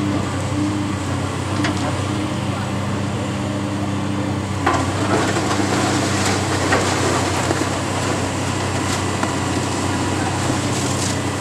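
A large excavator engine rumbles steadily.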